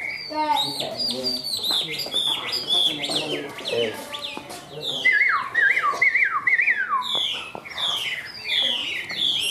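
A songbird sings a loud, rapid run of whistling, warbling phrases close by.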